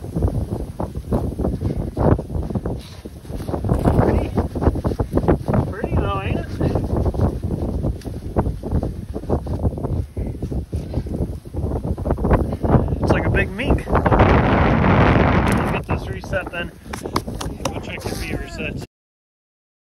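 Boots crunch and shuffle in snow.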